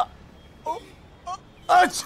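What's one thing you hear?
An older man shouts loudly.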